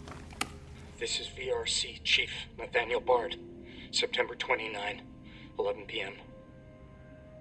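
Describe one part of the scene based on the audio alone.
An elderly man speaks calmly through a crackly recording.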